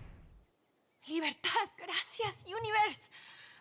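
A woman speaks with emotion.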